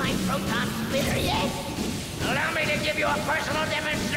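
A laser weapon fires with a crackling blast.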